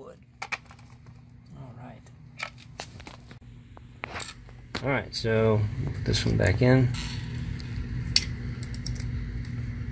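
Small metal parts click against a hard board.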